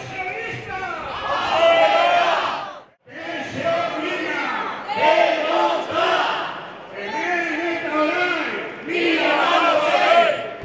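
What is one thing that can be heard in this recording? A large crowd chants loudly in unison outdoors.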